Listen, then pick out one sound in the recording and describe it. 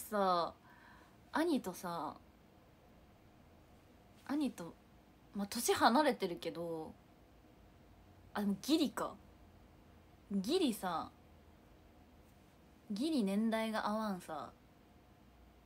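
A young woman speaks close by in short, lively bursts with pauses between them.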